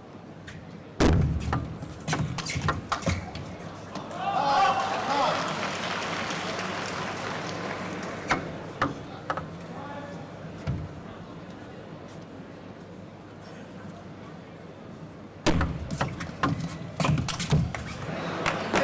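A table tennis ball clicks back and forth off paddles and the table in a fast rally.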